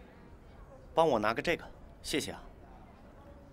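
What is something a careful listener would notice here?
A young man asks calmly, close by.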